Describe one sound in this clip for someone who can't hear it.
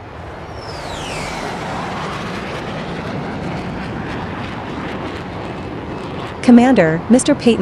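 Jet aircraft roar overhead.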